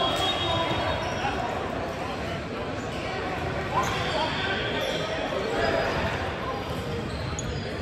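A volleyball thuds off hands and arms.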